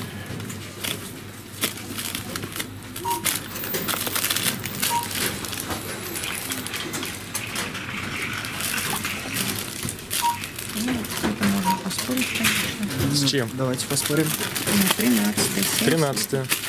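Plastic wrapping crinkles and rustles as goods are handled.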